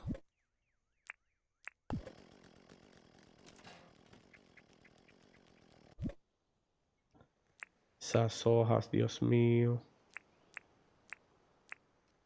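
Short game menu clicks tick now and then.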